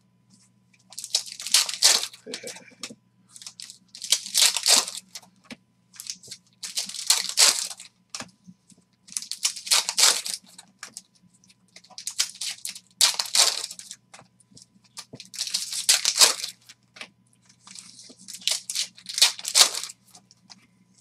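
Foil wrappers crinkle and tear open in repeated bursts, close by.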